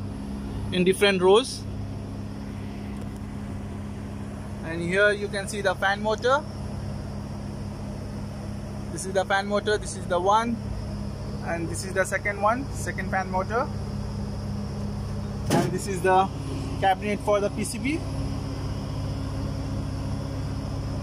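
A fan motor hums steadily.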